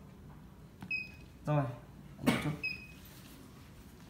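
A small electronic device beeps as its buttons are pressed.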